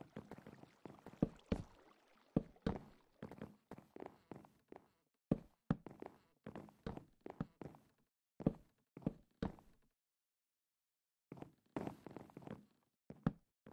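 Wooden blocks are set down with quick, soft knocks.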